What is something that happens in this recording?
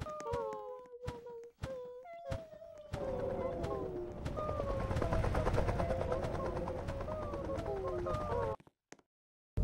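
Bright electronic game music plays, then cuts off abruptly.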